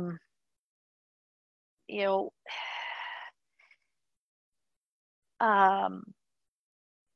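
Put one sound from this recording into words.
A middle-aged woman speaks with animation over an online call, in short bursts.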